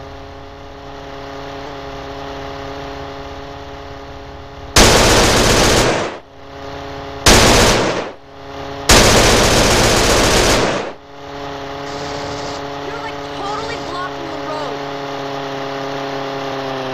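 A small propeller engine drones steadily.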